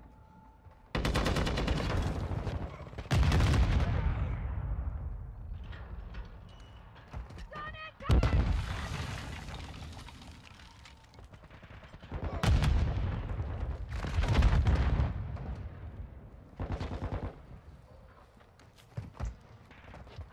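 Rapid gunfire bursts loudly in quick volleys.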